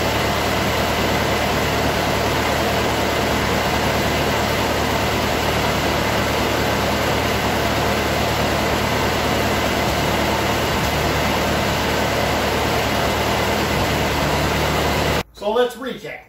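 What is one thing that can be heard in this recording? A tractor engine runs loudly and steadily, then cuts off.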